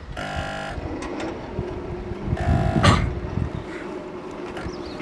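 Crossing barriers whir as they swing down.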